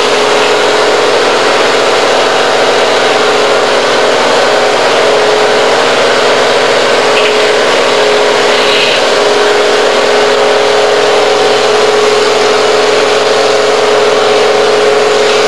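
A heavy diesel engine rumbles steadily at a distance outdoors.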